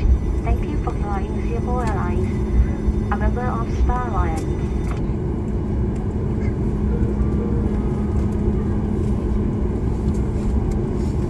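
Aircraft tyres rumble over the runway.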